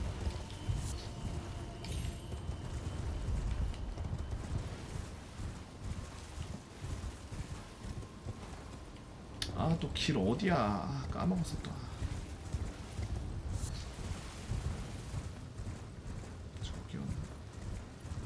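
Horse hooves thud steadily over soft ground.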